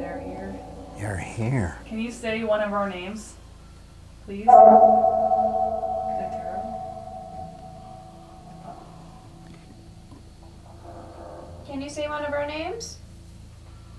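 A young woman speaks anxiously in a hushed voice close by.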